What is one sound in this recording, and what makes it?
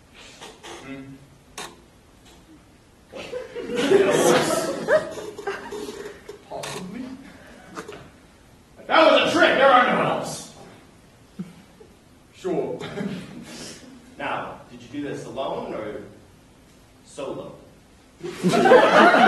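Young men talk with animation in a large echoing hall.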